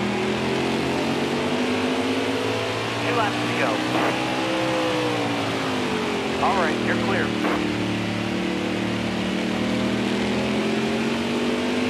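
A racing truck engine roars steadily, rising and falling in pitch.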